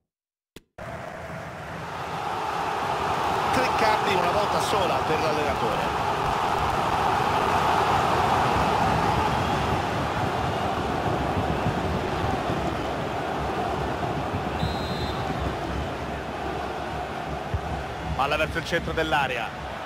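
A large crowd roars and chants steadily in a stadium.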